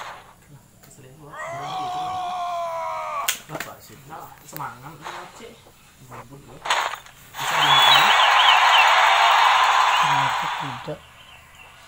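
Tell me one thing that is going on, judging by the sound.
Game effects clash and burst during a fight.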